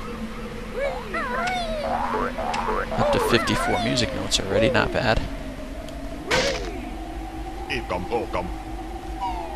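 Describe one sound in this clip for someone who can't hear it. Cartoon sound effects chirp and bloop in quick bursts.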